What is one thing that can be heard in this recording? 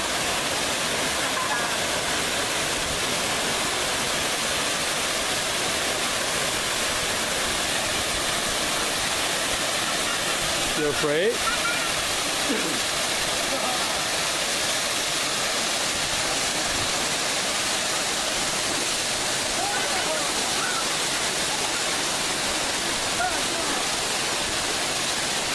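A waterfall roars and splashes steadily over rocks close by.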